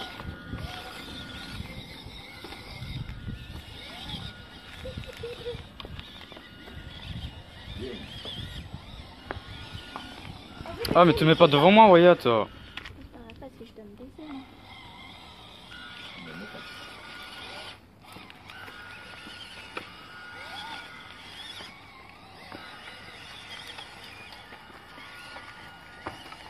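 Plastic wheels rattle and scrape on stones.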